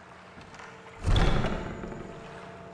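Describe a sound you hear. A heavy wooden door bangs open.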